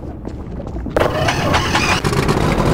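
A vehicle engine starts and roars close by.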